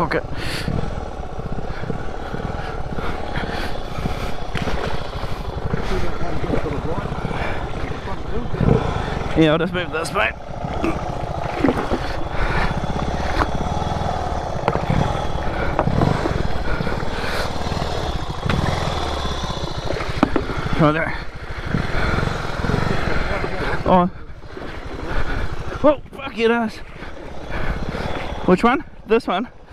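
Shallow river water rushes and gurgles steadily.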